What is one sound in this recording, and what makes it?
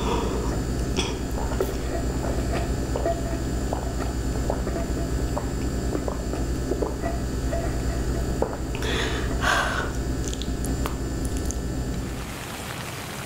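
Liquid slurps up through a straw close to a microphone.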